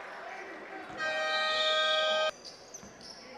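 A loud buzzer sounds in a large echoing hall.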